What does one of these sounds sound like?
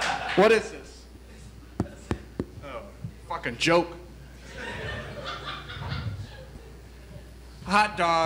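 Adult actors speak loudly and theatrically in a room with a slight echo.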